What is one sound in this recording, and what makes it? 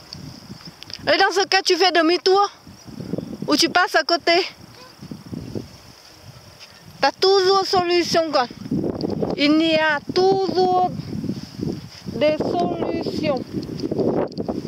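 A young child talks loudly nearby.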